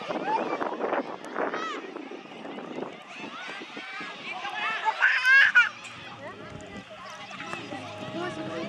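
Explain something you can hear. Children shout and call out excitedly outdoors.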